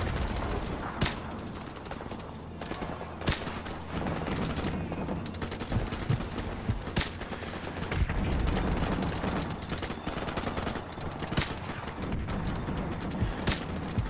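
A suppressed rifle fires sharp shots now and then.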